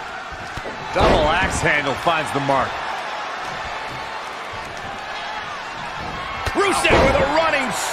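A body slams heavily onto a ring mat with a thud.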